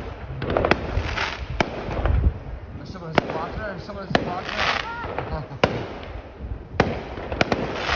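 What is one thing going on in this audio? Fireworks bang and crackle loudly outdoors, echoing between buildings.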